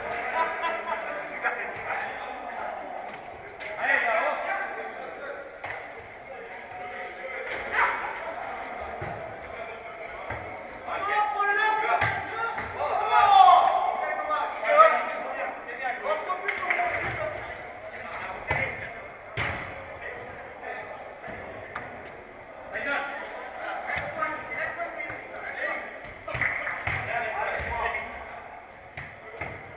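Young men shout and call out to each other across a large echoing hall.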